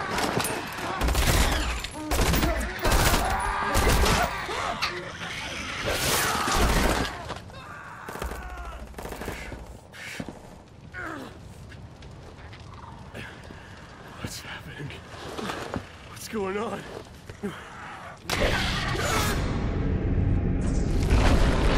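Creatures shriek and snarl.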